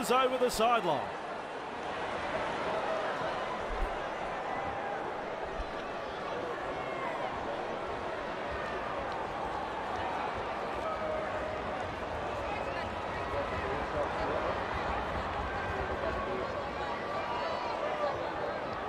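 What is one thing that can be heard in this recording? A large crowd roars and cheers steadily in a big stadium.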